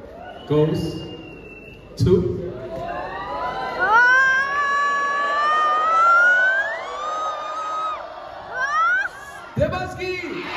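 A man shouts with animation through a loudspeaker in a large hall.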